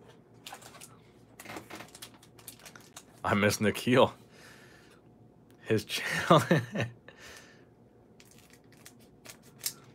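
A foil card pack crinkles as it is handled.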